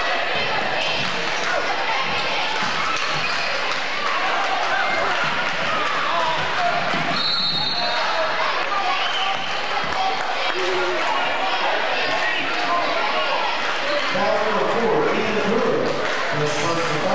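A crowd chatters and cheers throughout in a large echoing gym.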